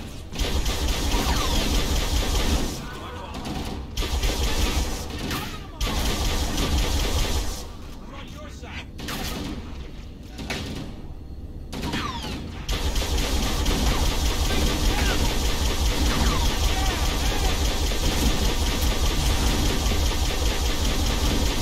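Energy guns fire in quick bursts.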